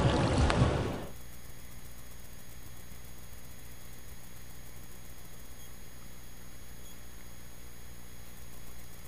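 Water laps gently close by.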